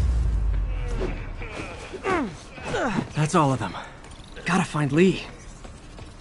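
A man grunts and groans while fighting.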